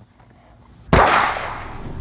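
A rifle fires a single loud shot outdoors.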